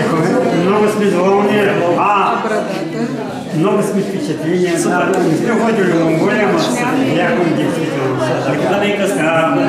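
A younger man speaks and laughs close by.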